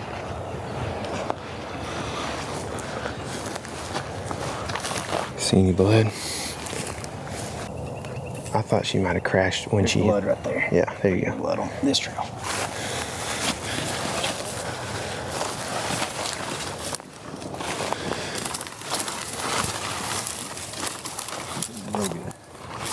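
Dry grass rustles and crunches underfoot as a person walks.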